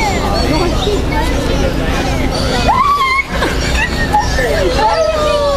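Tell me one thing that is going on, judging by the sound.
A crowd of adults and children chatter nearby.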